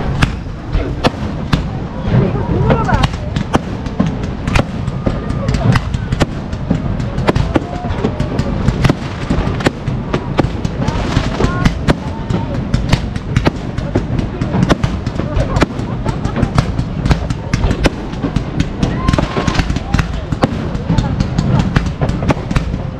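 Fireworks bang and crackle loudly, over and over.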